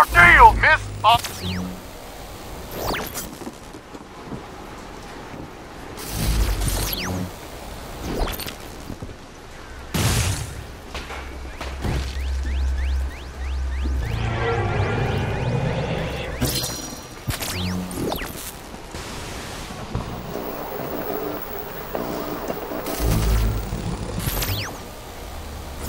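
A fiery burst of flame roars and whooshes.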